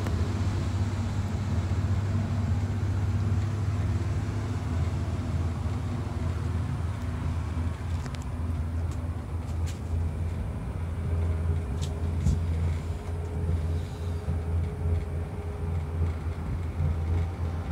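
Wind rumbles steadily against a cable car.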